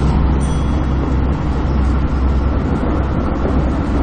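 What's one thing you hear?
Train wheels clatter over rail joints and switches.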